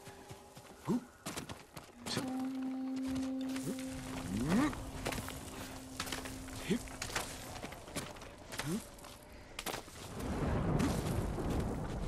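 Hands scrape and grip on rock while climbing.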